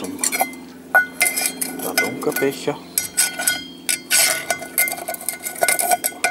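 A metal pot scrapes and clinks against stone.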